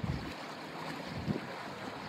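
Water churns and splashes behind a boat.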